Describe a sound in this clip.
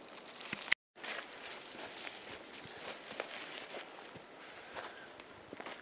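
Dry leaves and a tarp rustle as a person crawls over the ground.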